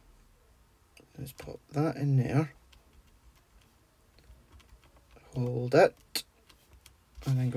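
Fingers press and rub on card, with soft paper rustles.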